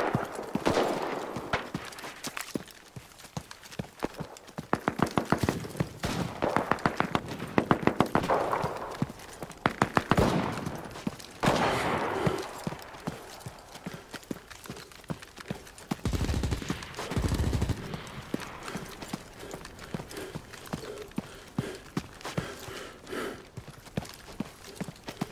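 Footsteps run quickly over sand and grass.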